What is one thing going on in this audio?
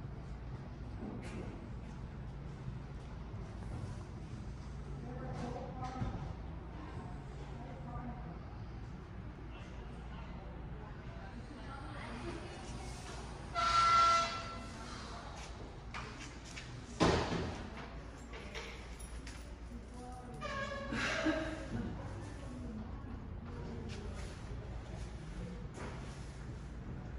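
A man talks quietly at a counter in an echoing hall.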